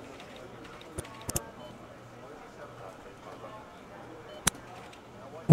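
Short interface clicks sound as menus open.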